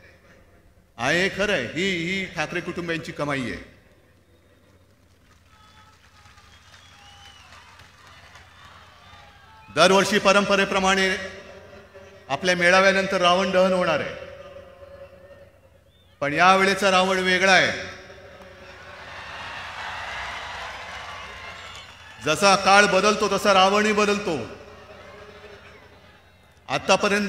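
A man speaks forcefully through a microphone over loudspeakers, in bursts.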